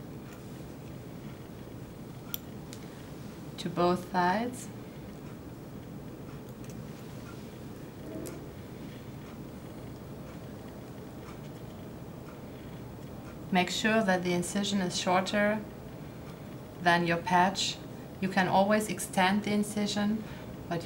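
Metal tweezers tick faintly against a small metal part.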